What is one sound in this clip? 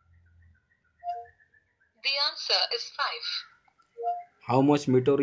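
A phone gives short electronic chimes.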